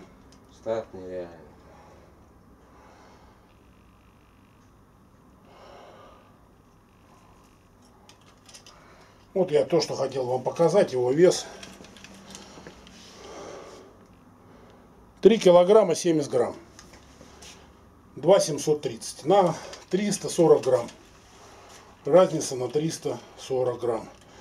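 A middle-aged man talks calmly, close up.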